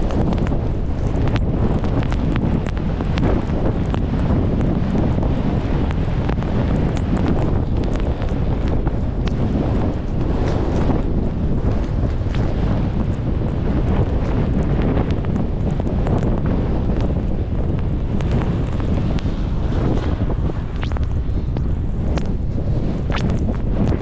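Strong wind roars steadily outdoors.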